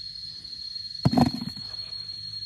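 Small tubers clatter into a plastic bowl.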